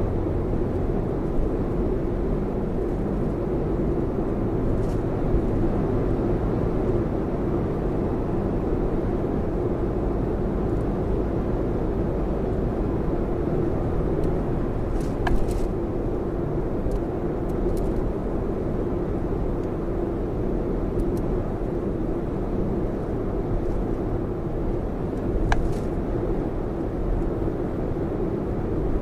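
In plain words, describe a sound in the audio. A car engine hums steadily inside the cabin while driving.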